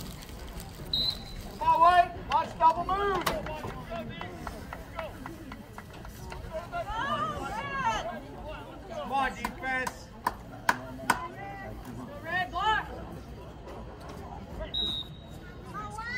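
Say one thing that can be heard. A referee's whistle blows in short blasts.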